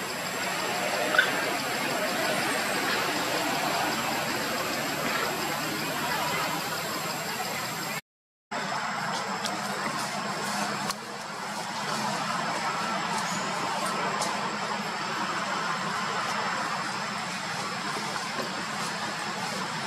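Leaves rustle as a small monkey climbs through tree branches.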